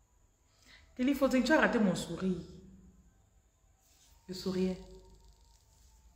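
A woman speaks briefly and calmly, close to the microphone.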